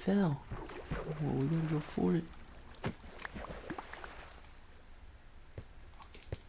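Lava bubbles and pops softly.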